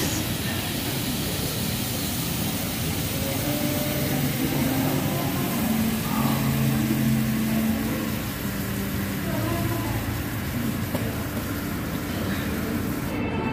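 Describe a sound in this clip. Sauce sizzles and hisses loudly on a hot metal plate.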